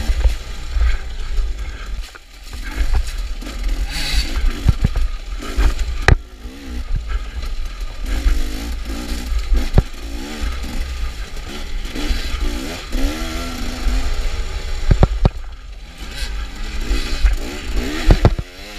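A dirt bike engine revs and roars up close, rising and falling.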